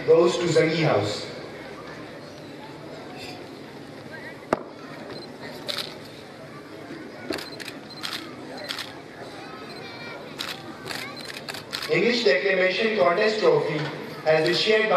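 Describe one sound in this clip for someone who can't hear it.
A man announces through a loudspeaker outdoors.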